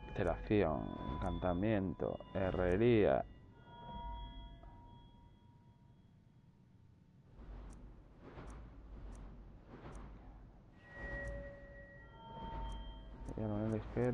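A soft menu click sounds as the selection moves.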